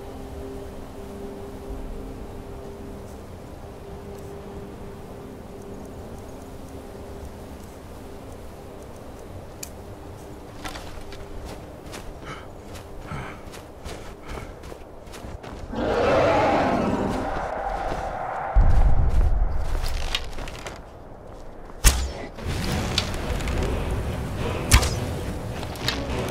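Wind blows steadily through a snowstorm.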